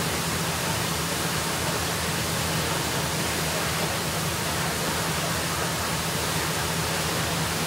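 Water gushes loudly from a broken hydrant in a steady roar.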